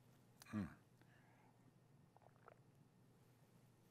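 A mug is set down on a table with a light knock.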